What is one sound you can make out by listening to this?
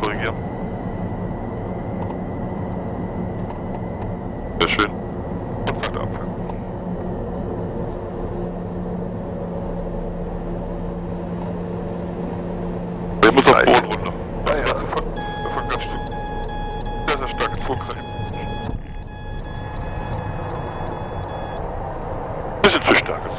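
Aircraft engines drone steadily and loudly inside a cockpit.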